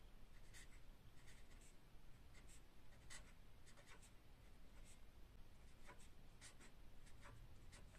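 A felt-tip marker squeaks and scratches softly on paper.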